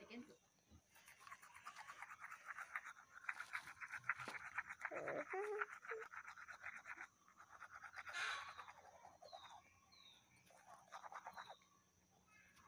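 A toothbrush scrubs rapidly back and forth against teeth.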